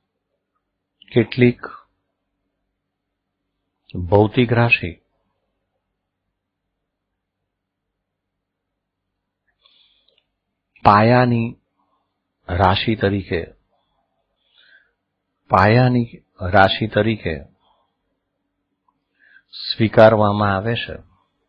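A middle-aged man speaks calmly into a microphone in short bursts with pauses.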